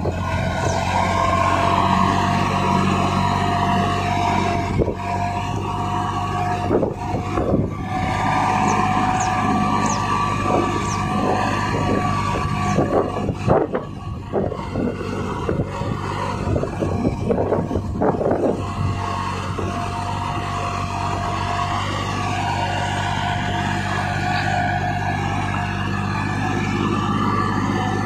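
A plough turns over heavy soil with crunching and thudding.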